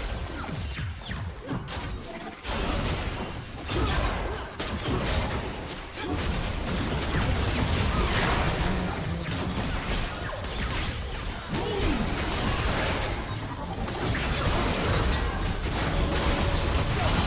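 Spell effects crackle and blast in a fast game battle.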